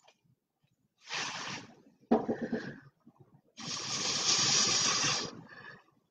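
A thin stick scrapes and dabs across a painted canvas.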